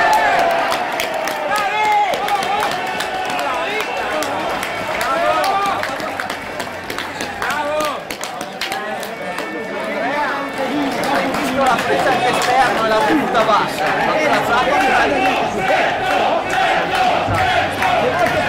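A crowd of spectators cheers and shouts loudly in an open stadium.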